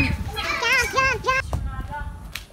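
A young child shrieks loudly and happily nearby.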